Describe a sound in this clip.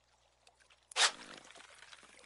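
A fish splashes as it strikes the lure.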